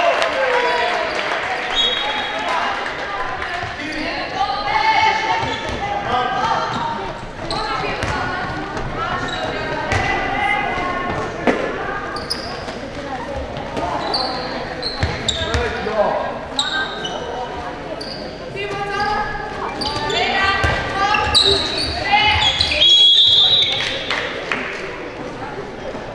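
A ball thuds as it bounces on the floor.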